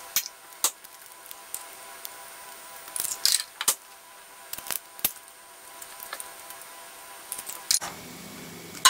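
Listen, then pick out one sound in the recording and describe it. Eggshells crack and tap against a glass bowl.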